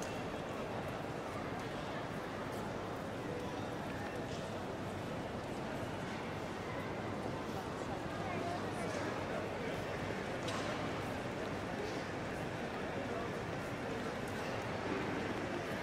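A distant crowd murmurs and footsteps echo through a large, echoing hall.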